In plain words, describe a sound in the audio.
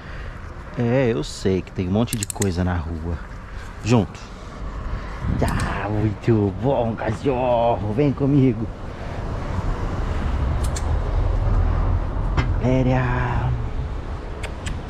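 A man gives short commands to a dog close by.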